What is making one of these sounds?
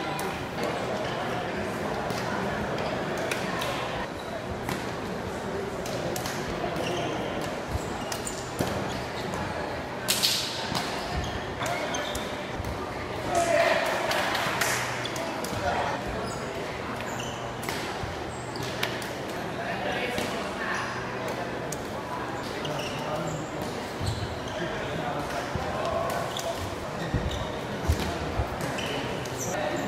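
Rackets strike a shuttlecock with sharp taps in a large echoing hall.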